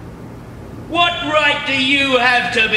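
A man speaks on a stage, heard from a distance.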